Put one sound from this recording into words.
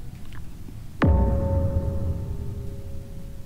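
A game chime rings out and slowly fades.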